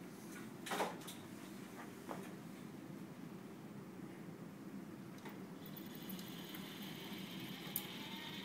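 A conveyor belt hums steadily.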